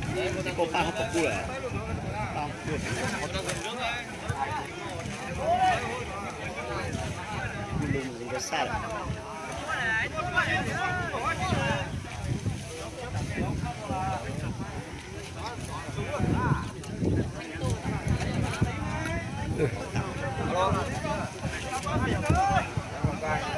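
A large outdoor crowd of men and women shouts and chatters with excitement.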